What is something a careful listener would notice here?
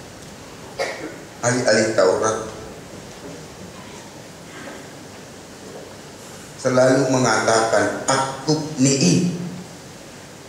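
A middle-aged man preaches with animation through a microphone.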